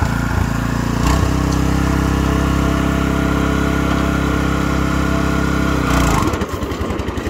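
A small engine idles with a steady hum close by.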